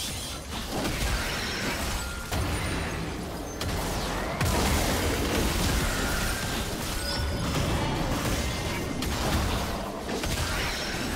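Magic spells whoosh and burst in a fast fight.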